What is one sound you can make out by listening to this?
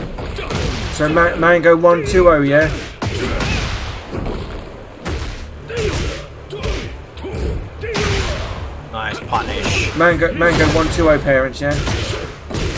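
Game characters grunt and shout as they fight.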